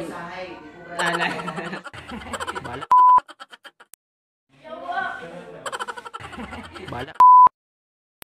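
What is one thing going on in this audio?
A young man laughs loudly.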